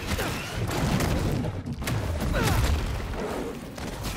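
A monster roars and snarls.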